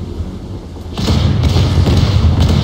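Spray splashes against a ship's hull.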